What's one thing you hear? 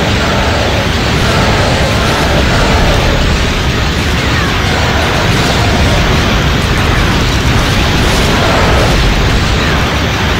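Laser blasts zap rapidly.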